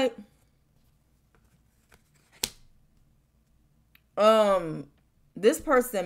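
Playing cards slide and tap on a wooden table.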